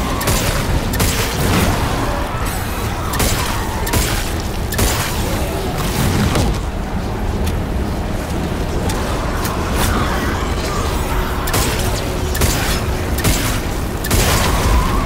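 A gun fires in sharp bursts.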